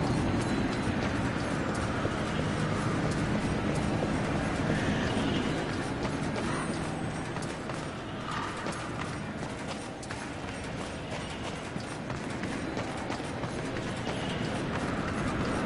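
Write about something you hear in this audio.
An armoured figure's footsteps clank on stone.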